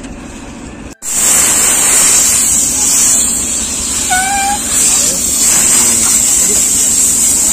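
Water sprays steadily from a hose.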